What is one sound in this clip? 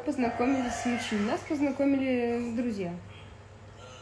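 A young woman speaks close up with animation, her voice drawn out and sing-song.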